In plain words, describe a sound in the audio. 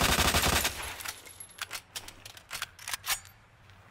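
A submachine gun is reloaded with metallic clicks.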